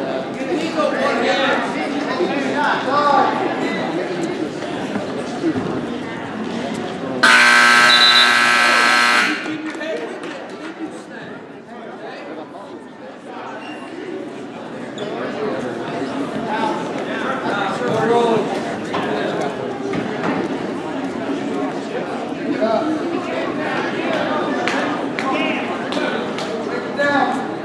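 A crowd of spectators chatters throughout in a large echoing gym.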